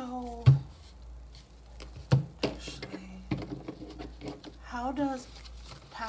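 Hard objects knock and tap on a table.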